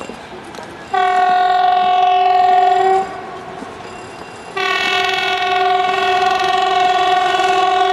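A train horn blasts loudly twice, each blast long and steady.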